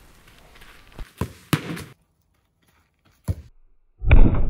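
A football thumps when kicked.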